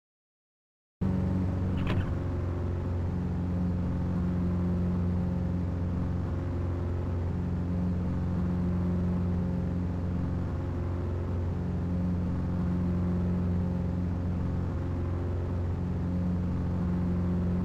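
A car engine idles with a low steady hum.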